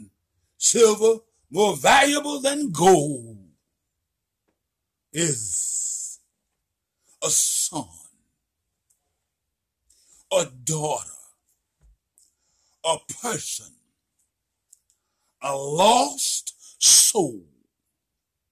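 An elderly man speaks close to the microphone with animation, in short bursts with pauses.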